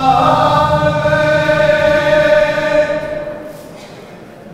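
Men sing together in a large echoing hall.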